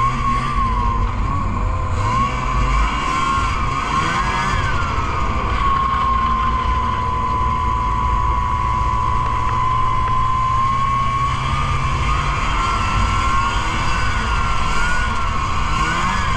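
Wind rushes past the microphone.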